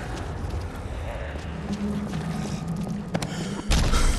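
Zombies groan and snarl nearby.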